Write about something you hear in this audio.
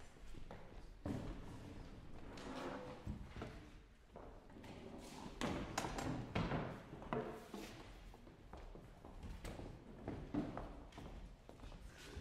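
Footsteps knock on a wooden floor as several people walk about.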